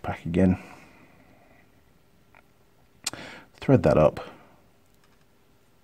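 Small metal parts click softly as they are handled.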